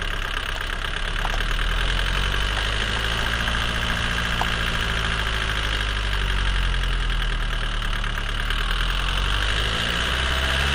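A car engine runs with a low, steady hum.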